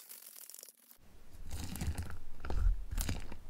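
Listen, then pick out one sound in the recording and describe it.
Fingers poke and crunch slime full of crunchy bits.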